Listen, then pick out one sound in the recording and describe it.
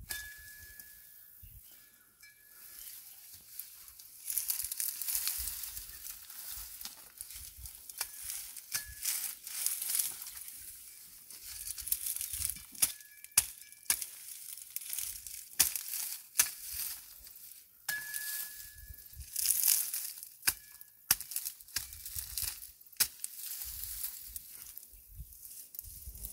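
Dry grass and twigs rustle and crackle as a person pulls them up by hand.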